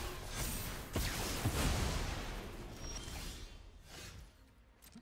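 A fiery blast roars and slowly dies away.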